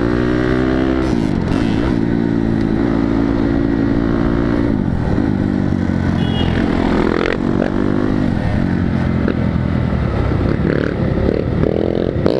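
A motorcycle engine roars up close, its pitch rising and falling as it shifts gears.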